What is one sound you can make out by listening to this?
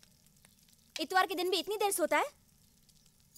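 A young woman speaks.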